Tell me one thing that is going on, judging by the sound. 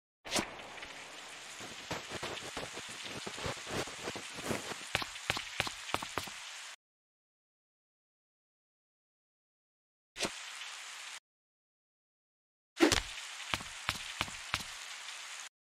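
Quick footsteps patter on a rooftop.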